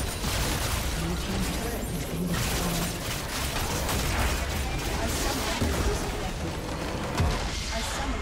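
Magic blasts and clashing hits crackle in a fast battle.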